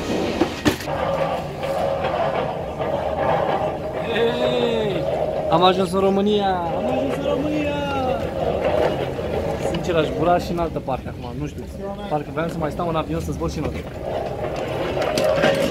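A young man talks animatedly close to the microphone.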